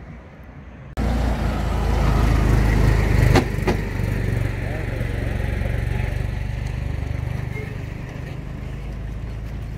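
A tourist road train's engine rumbles low as it passes.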